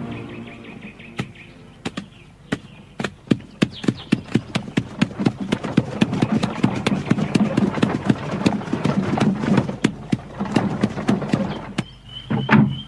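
Horse hooves clop steadily on hard ground.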